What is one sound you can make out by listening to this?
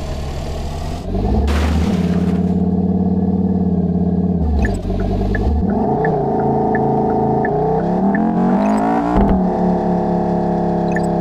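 A racing car engine revs and roars as the car speeds up through the gears.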